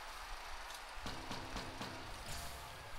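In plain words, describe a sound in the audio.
A short electronic game jingle plays in quick beeping notes.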